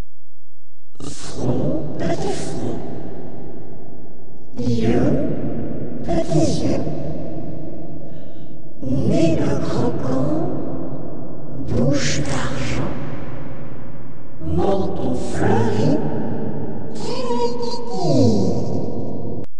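A woman sings loudly and cheerfully.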